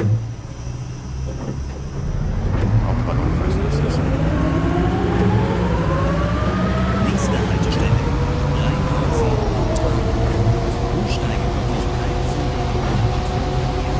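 A bus engine hums and whines as it speeds up and shifts gear.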